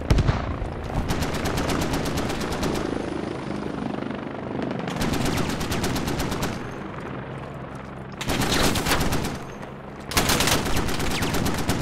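A rifle fires rapid bursts nearby.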